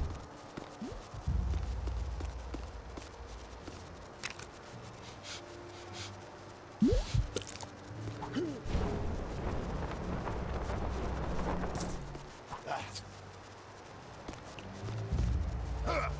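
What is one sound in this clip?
Electricity crackles and buzzes in short bursts.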